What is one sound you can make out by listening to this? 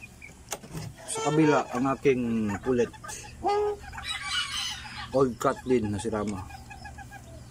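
A chicken squawks and cackles loudly close by.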